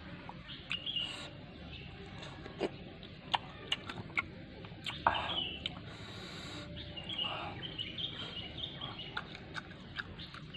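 A young man chews and smacks his lips loudly close by.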